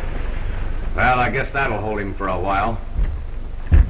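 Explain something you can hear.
A man speaks in a firm, clear voice.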